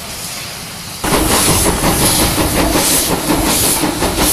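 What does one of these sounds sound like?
A steam locomotive rolls slowly past close by, clanking.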